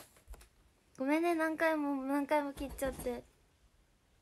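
A young woman speaks close by in a high, lively voice.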